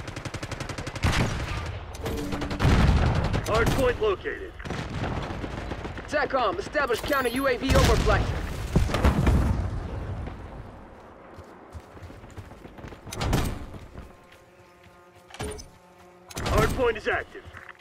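A sniper rifle fires loud, sharp shots that echo away.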